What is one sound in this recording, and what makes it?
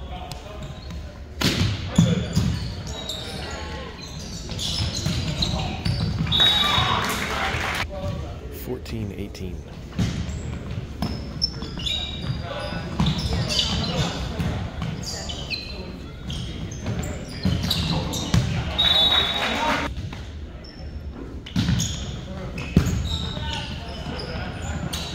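A volleyball is served and struck with sharp slaps in a large echoing gym.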